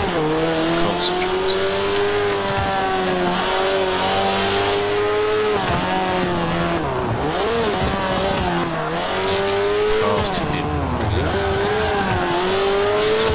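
A car engine revs loudly, its pitch rising and falling through gear changes.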